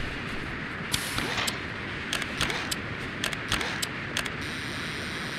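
Short electronic beeps sound from a handheld remote.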